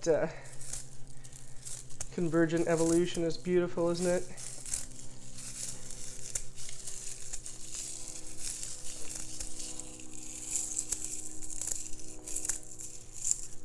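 Fresh herb leaves rustle and crackle as hands strip them from their stems.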